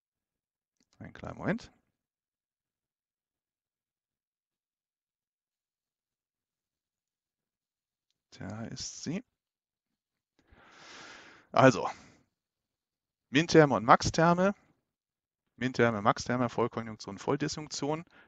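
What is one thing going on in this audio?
A middle-aged man speaks calmly into a headset microphone, with pauses.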